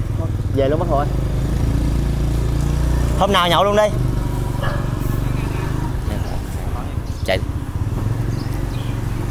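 A motorbike engine idles with a low, steady rumble close by.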